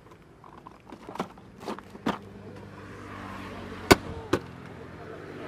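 A plastic tool case clicks and knocks as it is handled.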